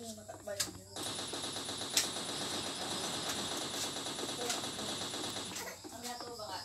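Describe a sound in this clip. A light machine gun fires a rapid automatic burst.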